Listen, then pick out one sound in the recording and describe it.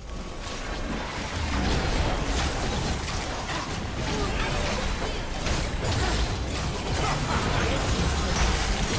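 Spell and weapon effects crash and burst in a video game battle.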